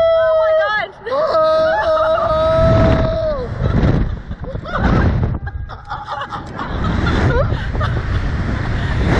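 A man shouts and laughs close by.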